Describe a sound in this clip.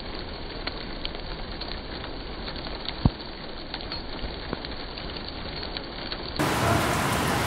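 Rain patters steadily on a car roof.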